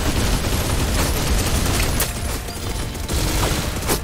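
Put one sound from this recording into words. Magic blasts explode with a bursting boom.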